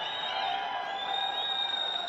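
A young man shouts loudly.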